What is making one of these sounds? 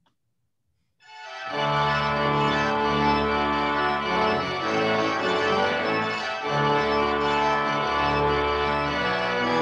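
A pipe organ plays a lively tune.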